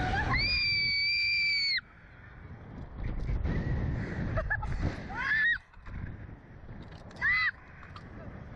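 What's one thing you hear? A young girl screams loudly and long, close by.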